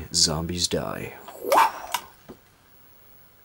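A toy gun plays loud electronic sound effects.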